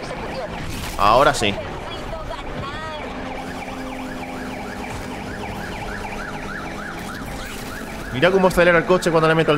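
A police siren wails in short bursts.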